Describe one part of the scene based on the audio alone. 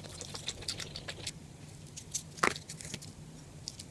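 Crispy fried chicken crackles as fingers handle it.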